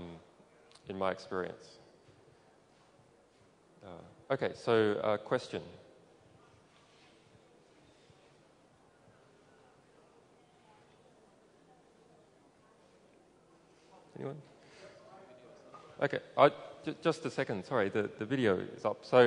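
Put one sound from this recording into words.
A man speaks calmly into a microphone, heard over loudspeakers with pauses.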